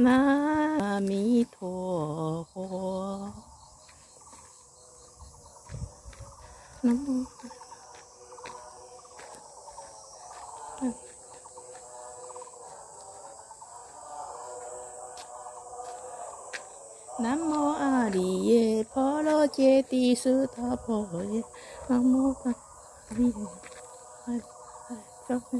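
A middle-aged woman talks close to the microphone.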